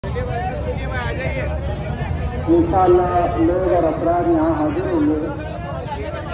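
A large crowd of men murmurs and chatters outdoors.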